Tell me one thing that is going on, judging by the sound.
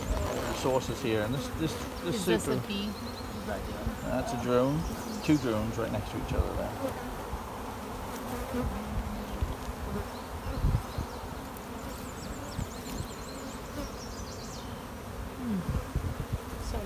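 Bees buzz steadily close by.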